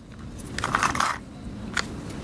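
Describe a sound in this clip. A metal tool scrapes on a small circuit board.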